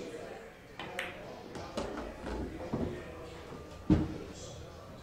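Pool balls click against each other and the cushions.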